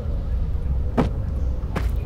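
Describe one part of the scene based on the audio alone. A wooden barrel thumps once.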